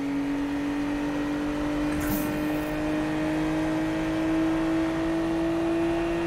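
A car engine roars steadily at high speed, its pitch slowly rising.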